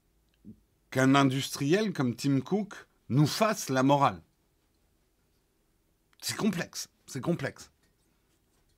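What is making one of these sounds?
A middle-aged man speaks calmly and close into a microphone, in short bursts with pauses.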